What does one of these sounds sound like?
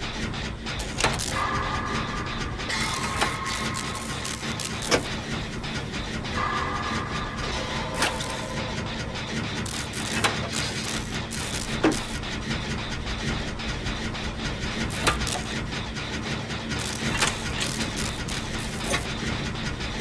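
Metal parts clank and click as a machine is worked on.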